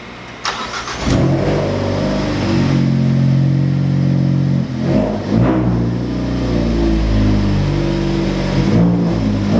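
A car engine starts and idles with a steady low rumble.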